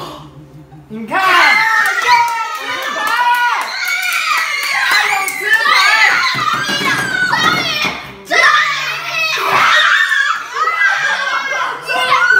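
Young boys shout and cheer excitedly close by.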